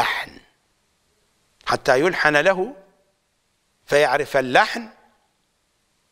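An older man speaks with emphasis into a close microphone, in short bursts with pauses.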